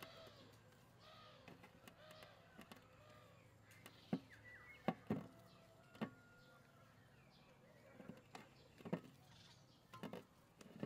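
Soft dough is patted and slapped between hands.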